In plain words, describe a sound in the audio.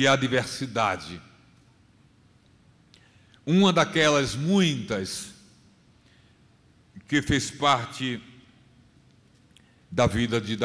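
A middle-aged man reads aloud slowly into a microphone, in short phrases with pauses.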